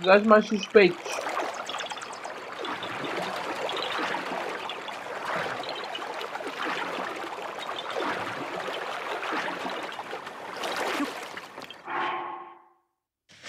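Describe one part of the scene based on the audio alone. Water splashes steadily as a swimmer paddles.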